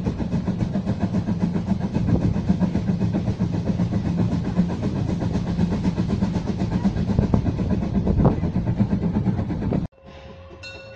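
A steam locomotive chugs steadily up ahead.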